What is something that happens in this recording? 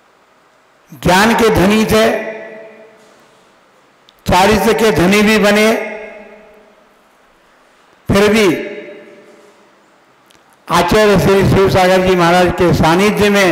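An elderly man speaks slowly and forcefully into a microphone, in bursts with pauses, his voice echoing in a reverberant space.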